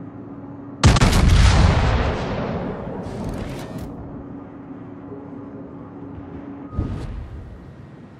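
Heavy naval guns fire in loud, deep booming blasts that rumble away slowly.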